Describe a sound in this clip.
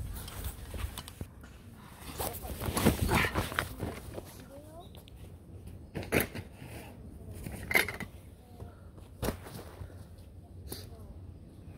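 A bag rustles and thumps onto the ground.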